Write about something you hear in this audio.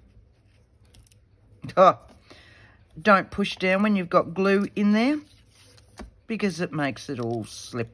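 A tool rubs and scrapes along a strip of paper.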